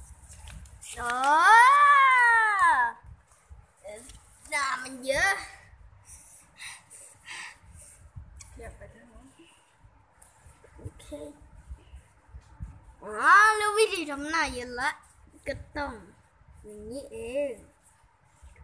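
A young child speaks loudly in a high, sing-song voice close by.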